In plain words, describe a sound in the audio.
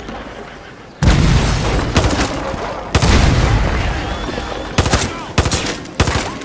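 A gun fires loud blasts that echo.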